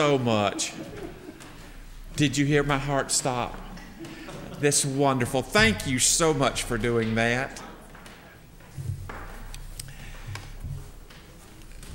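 An older man preaches with feeling into a microphone, in an echoing hall.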